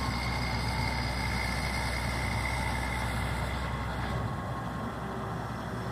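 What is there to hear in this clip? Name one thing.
A heavy diesel engine rumbles steadily nearby.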